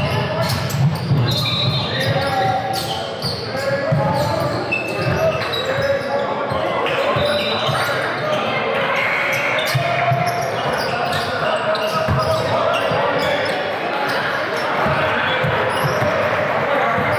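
Teenage girls call out to each other in an echoing gym.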